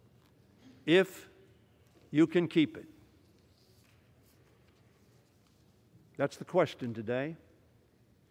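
An elderly man speaks firmly into a microphone, in short bursts with pauses.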